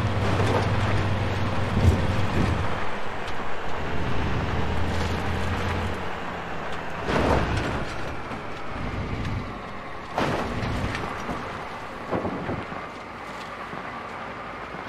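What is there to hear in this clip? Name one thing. A car bumps and rattles over a rough dirt track.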